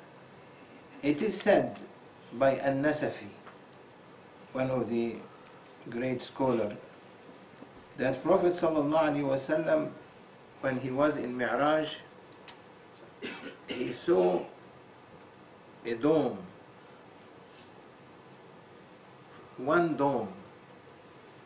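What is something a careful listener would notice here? An elderly man reads aloud slowly into a microphone, with pauses between phrases.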